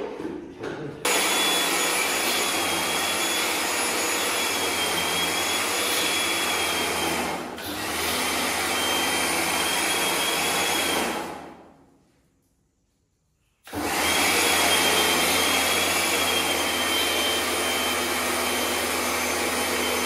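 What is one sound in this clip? A pressure washer runs with a steady, high whine and a hiss of spraying water, stopping briefly and starting again.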